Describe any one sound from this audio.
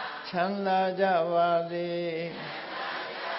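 A group of men chant together in unison, echoing in a large hall.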